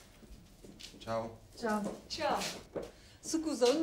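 An elderly woman speaks cheerfully.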